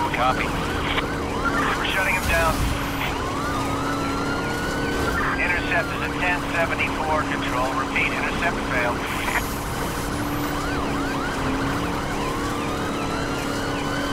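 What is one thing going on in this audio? Tyres rumble over rough ground.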